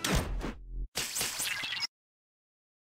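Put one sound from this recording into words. A game menu sounds a short effect as an option is chosen.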